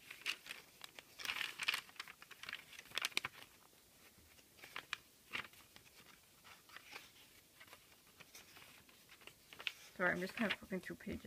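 Paper pages rustle and flick as they are turned one after another.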